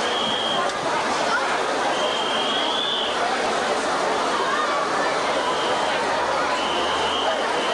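A steel band plays loudly outdoors.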